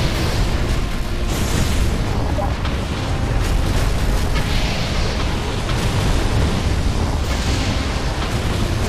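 Laser weapons zap and crackle in rapid bursts.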